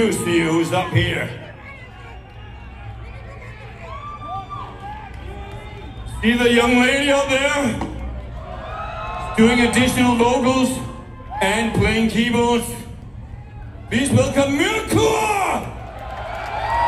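A man sings theatrically through a microphone over loud concert speakers.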